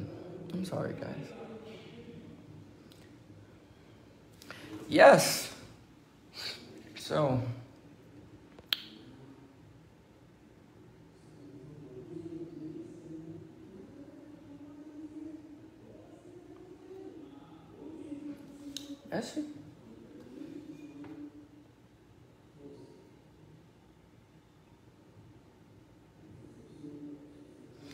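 A young man sings softly close to a microphone.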